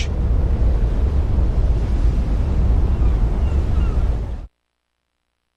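Wind rushes loudly past during a parachute descent.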